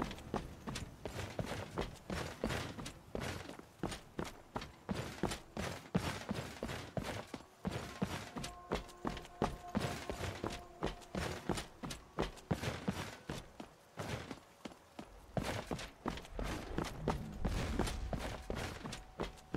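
Footsteps crunch on a cobblestone path.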